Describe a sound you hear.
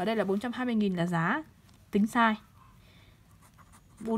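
A pen scratches on paper.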